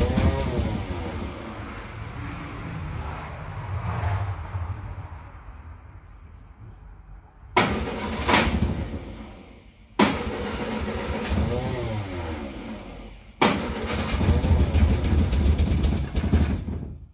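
A car engine runs with a deep, uneven rumble close by.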